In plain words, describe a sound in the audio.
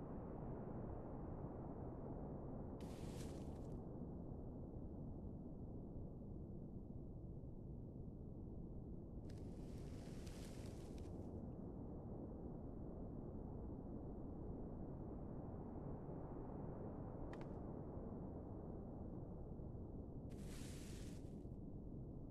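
Wind blows steadily through a snowy forest.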